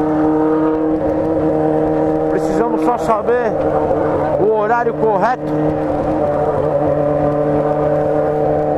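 A motorcycle engine hums steadily at cruising speed.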